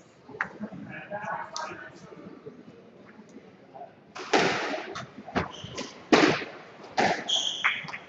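A squash ball smacks hard against the walls in a large echoing court.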